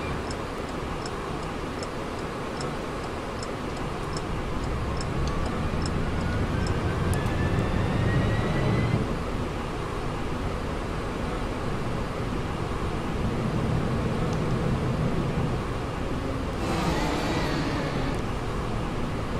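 A bus engine rumbles steadily, rising and falling as it drives.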